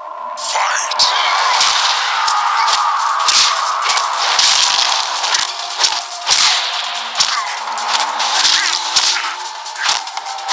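Punches and kicks land hard in a video game fight.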